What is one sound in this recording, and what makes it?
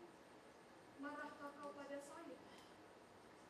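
A young woman speaks out in a dramatic voice, in a large echoing hall.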